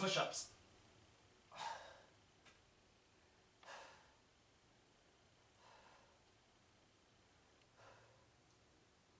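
A man exhales sharply and rhythmically, close by.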